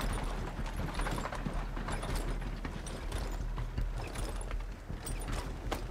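A horse's hooves clop.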